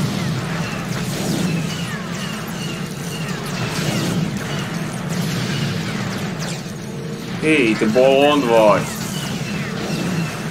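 Laser blasts fire rapidly.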